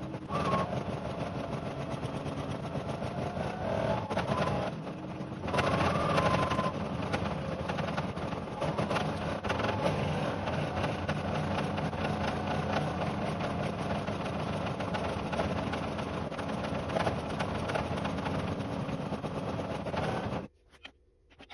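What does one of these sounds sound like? An embroidery machine stitches with a fast, steady rattling hum, then stops.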